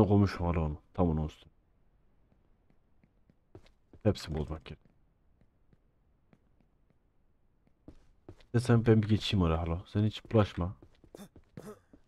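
A young man talks into a close microphone with animation, in short bursts.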